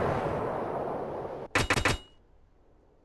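Heavy guns boom from a warship.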